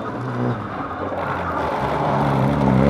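Tyres crunch and spray gravel as a rally car slides through a bend.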